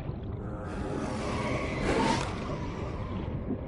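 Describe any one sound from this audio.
Bubbles gurgle and rush upward underwater.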